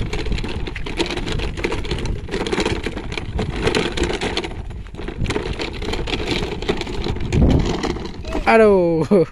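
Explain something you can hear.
A toy ride-on car with plastic wheels rumbles and crunches as it is dragged on a string over a gravelly dirt path.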